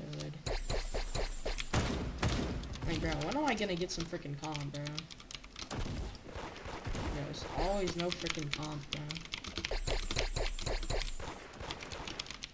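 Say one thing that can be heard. A game gun fires rapid shots.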